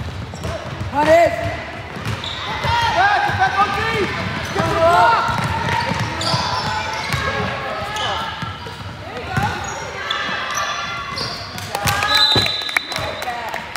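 Girls shout and call out to each other in a large echoing gym.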